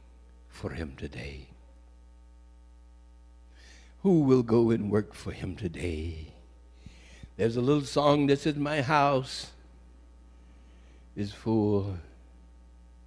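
A man speaks slowly and with feeling into a microphone, heard through loudspeakers.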